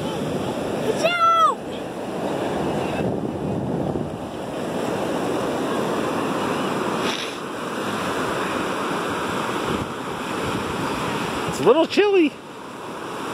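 A young girl squeals shrilly.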